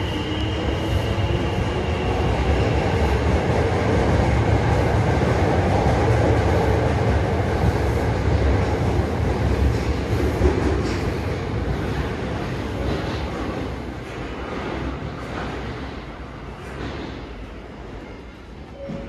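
A train rumbles out of an echoing underground station and slowly fades away.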